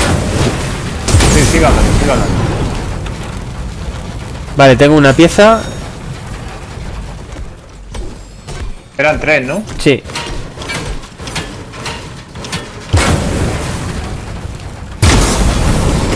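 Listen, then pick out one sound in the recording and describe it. A car explodes with a loud boom.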